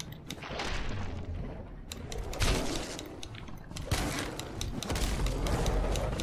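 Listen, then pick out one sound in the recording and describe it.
Heavy blows thud against flesh.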